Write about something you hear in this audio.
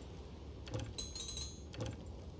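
A game menu chimes as it opens.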